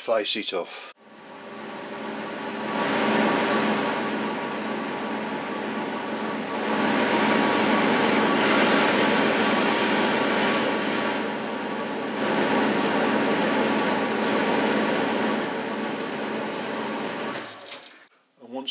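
A lathe motor whirs steadily as the spindle spins.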